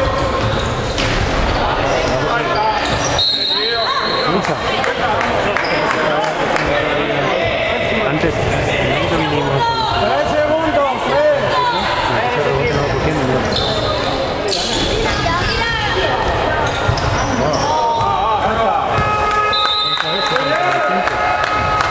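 Sneakers squeak on a hard court in an echoing hall.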